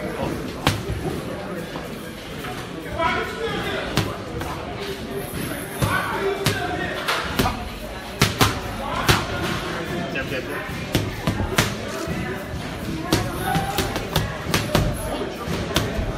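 Boxing gloves smack into focus mitts in quick bursts.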